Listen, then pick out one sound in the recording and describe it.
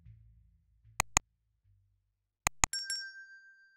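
A computer mouse clicks sharply twice, then twice again.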